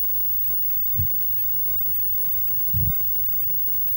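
Footsteps thud softly on a floor nearby.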